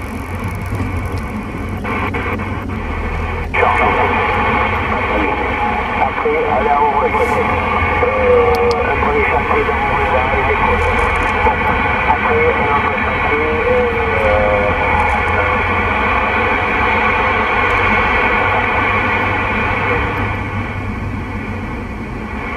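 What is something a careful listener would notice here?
A car's road noise rumbles low while driving.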